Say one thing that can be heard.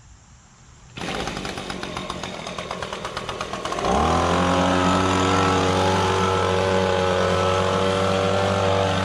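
A gas leaf blower engine starts running and then revs up to a loud, steady roar close by.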